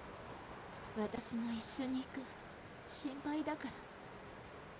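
A young woman speaks calmly and softly.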